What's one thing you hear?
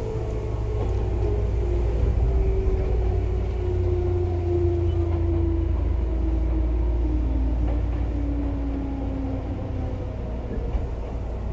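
An electric train motor whines and slowly falls in pitch.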